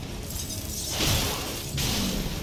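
A magic burst whooshes with an icy crackle.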